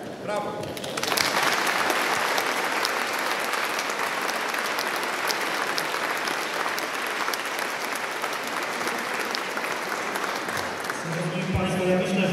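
A crowd applauds loudly outdoors.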